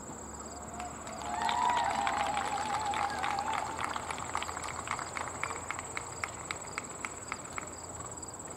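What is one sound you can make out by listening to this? Spectators clap their hands outdoors.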